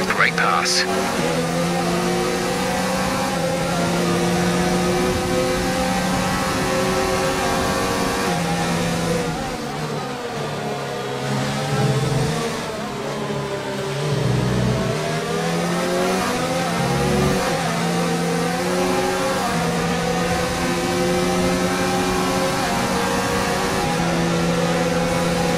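A racing car engine roars and whines, rising and falling in pitch as it shifts gears.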